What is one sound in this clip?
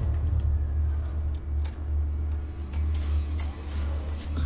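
Keys click as a keypad is pressed.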